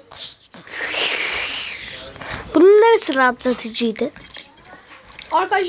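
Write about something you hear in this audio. Slime squishes and squelches between fingers.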